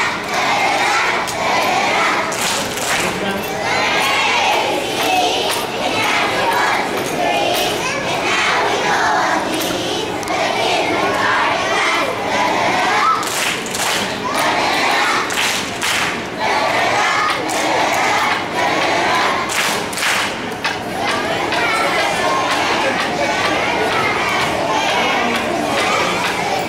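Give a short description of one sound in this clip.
A group of young children sing together in an echoing hall.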